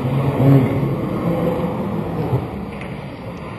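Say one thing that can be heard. A crowd of students laughs and cheers in a large echoing hall.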